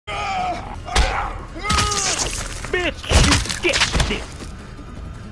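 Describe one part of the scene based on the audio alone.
Heavy thuds and scuffles of a violent struggle ring out.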